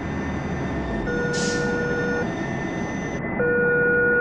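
A train rolls past.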